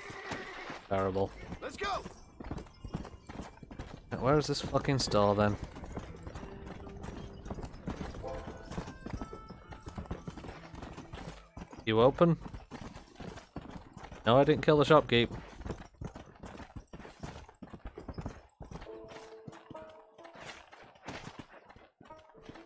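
Horse hooves gallop steadily over dry ground.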